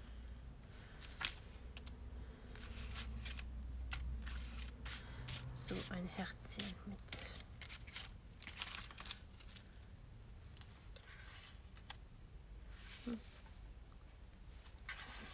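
Paper pieces rustle and crinkle as hands sort through them.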